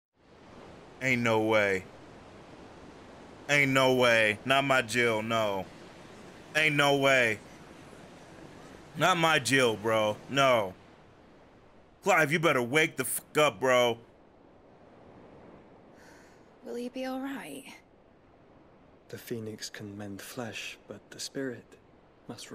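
A man talks with animation into a close microphone.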